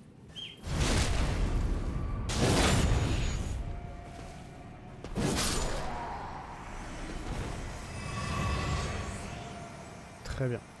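Magic spells whoosh and crackle in loud bursts.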